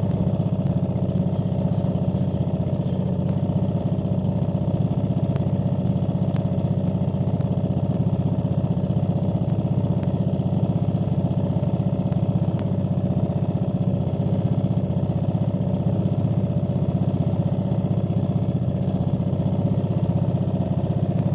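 A boat engine drones steadily and loudly close by.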